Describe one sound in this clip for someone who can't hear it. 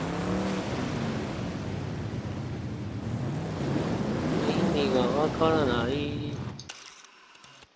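A car engine revs loudly and climbs in pitch.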